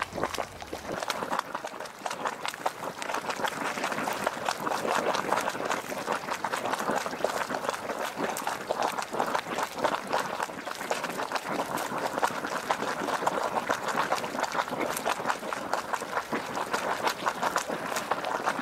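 Water gurgles and bubbles in a hot spring pool.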